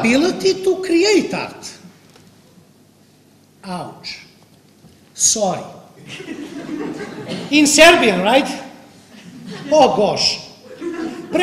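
A man speaks with animation in a hall with slight echo.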